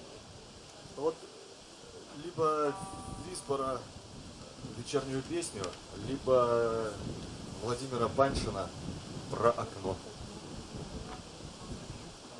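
A man speaks calmly into a microphone, heard through loudspeakers outdoors.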